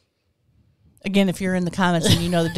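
A middle-aged woman talks with animation close to a microphone.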